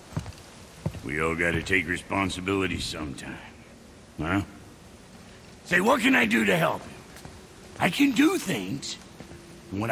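A man speaks with animation in a higher, lively voice.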